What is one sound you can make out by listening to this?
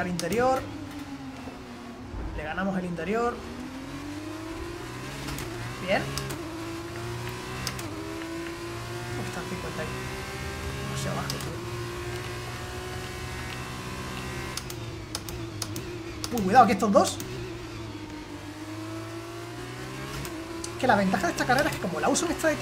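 A racing car engine whines steadily, rising and falling in pitch as it shifts gears.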